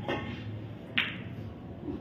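Pool balls knock together with a clack.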